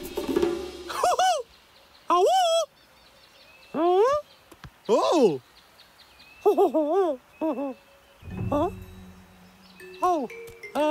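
A high, squeaky animated voice chatters excitedly in short bursts.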